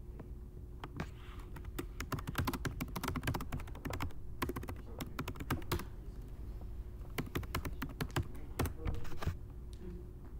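Keys clack on a keyboard in quick bursts.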